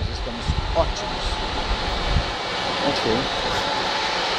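A middle-aged man speaks close to the microphone.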